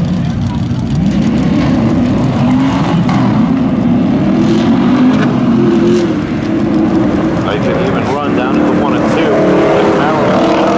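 Two car engines roar loudly as the cars pull away and speed up.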